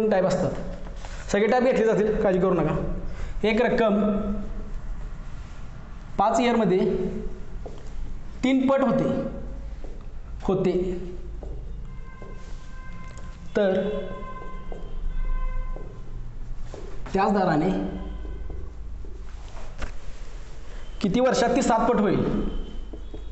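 A young man speaks steadily, explaining, close to a microphone.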